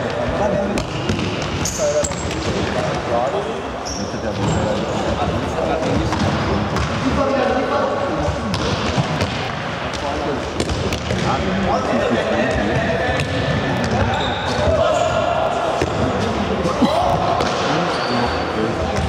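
A ball thuds against the floor as it is kicked.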